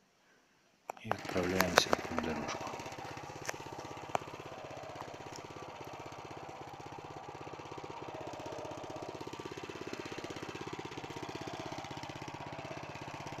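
A small engine idles steadily nearby.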